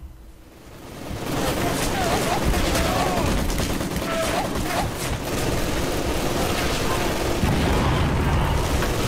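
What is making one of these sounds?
Heavy rumbling battle noise rolls on.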